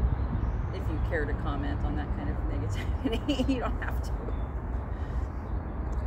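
A woman speaks calmly and close by, outdoors.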